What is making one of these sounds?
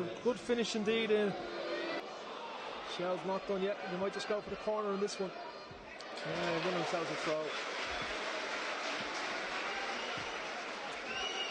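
A stadium crowd cheers and roars outdoors.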